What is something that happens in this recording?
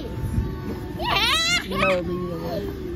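A young child laughs close by.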